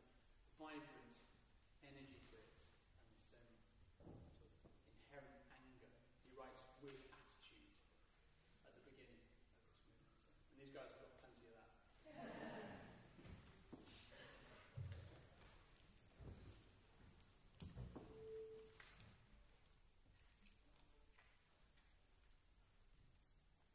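A small chamber orchestra plays softly in an echoing concert hall.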